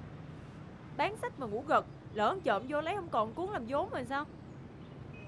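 A young woman speaks sharply and angrily nearby.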